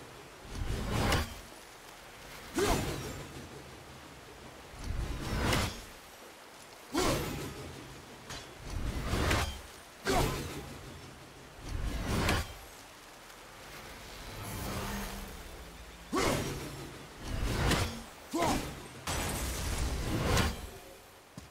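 Breakable objects shatter with sharp cracks.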